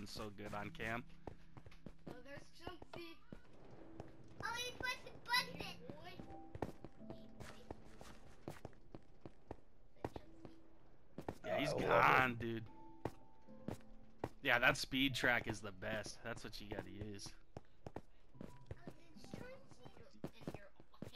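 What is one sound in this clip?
Footsteps tap on stone.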